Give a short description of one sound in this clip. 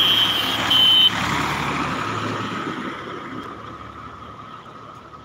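A small motorized cart's engine putters past close by and fades into the distance.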